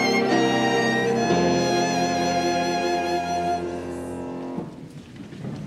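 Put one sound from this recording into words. A large congregation sings a hymn together in an echoing hall.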